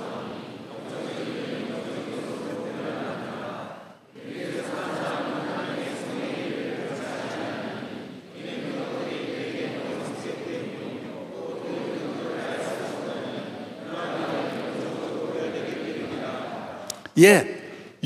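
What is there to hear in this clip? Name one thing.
A crowd of people pray aloud together in a large echoing hall.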